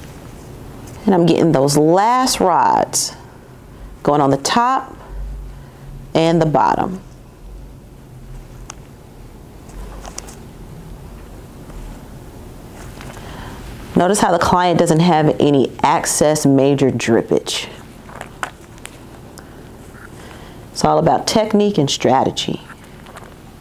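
A woman speaks calmly and clearly into a nearby microphone, pausing between phrases.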